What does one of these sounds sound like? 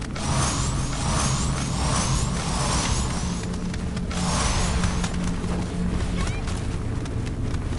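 Footsteps thud quickly on rock.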